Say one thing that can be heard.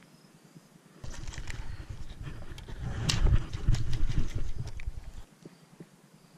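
A baitcasting reel whirs as line is wound in.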